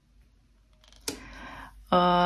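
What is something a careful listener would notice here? A card is laid down softly on a table.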